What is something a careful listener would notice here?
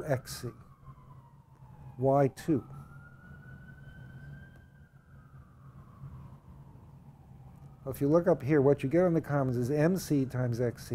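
An elderly man speaks calmly and thoughtfully, close to a microphone, with pauses.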